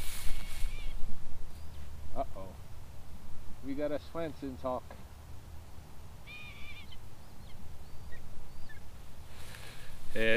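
Footsteps swish through tall dry grass close by.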